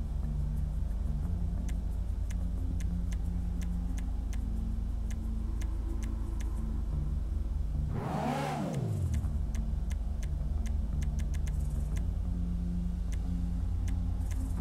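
Menu selections click softly and repeatedly.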